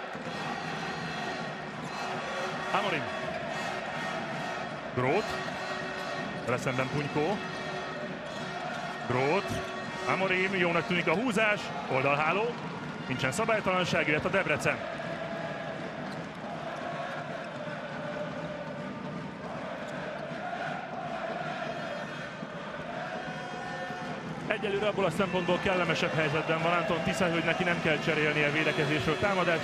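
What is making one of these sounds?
A large crowd cheers and murmurs in an echoing hall.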